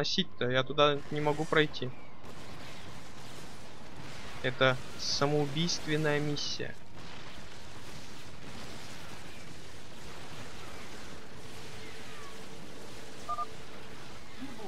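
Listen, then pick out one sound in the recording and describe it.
Gunfire and small explosions crackle in a battle.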